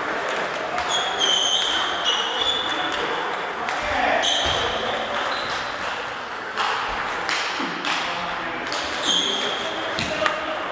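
Sneakers squeak sharply on the hall floor.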